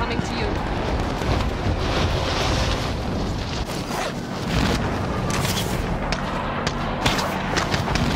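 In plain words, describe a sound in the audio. Wind rushes loudly during a fast freefall.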